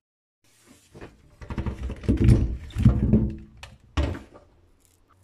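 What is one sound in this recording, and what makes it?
Potatoes tumble and knock into a metal sink.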